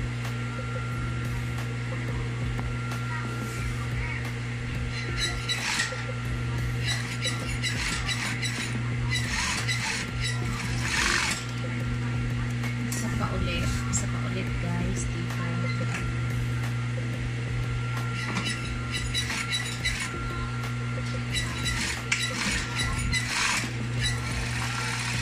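A sewing machine needle stitches in quick bursts.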